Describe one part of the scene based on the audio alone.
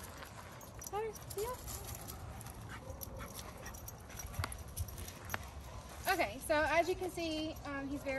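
A woman talks to a dog in a high, coaxing voice.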